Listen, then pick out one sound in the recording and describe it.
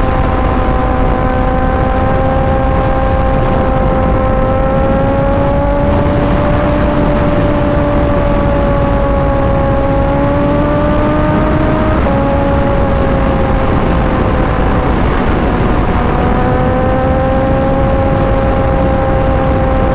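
Wind roars loudly past the rider.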